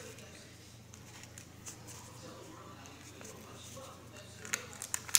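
A paper banknote crinkles as fingers handle it.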